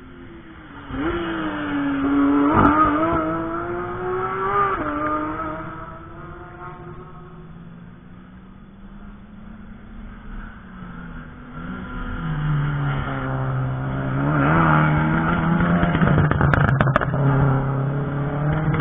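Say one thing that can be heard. A car engine roars as cars speed past on a track, rising and falling in pitch.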